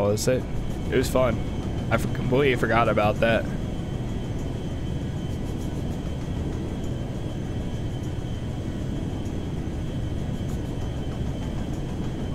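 A jet airliner's engines roar steadily.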